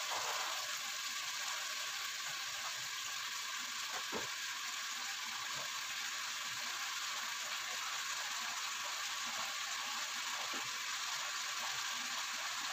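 Chicken sizzles and crackles steadily in a hot pot.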